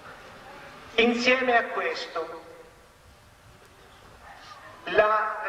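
A man speaks with animation into a microphone, heard through a loudspeaker outdoors.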